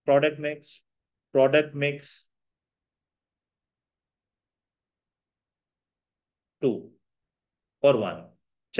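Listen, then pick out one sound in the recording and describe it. A young man speaks calmly into a close microphone, in short bursts.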